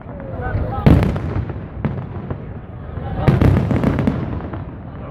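Fireworks boom and crackle overhead.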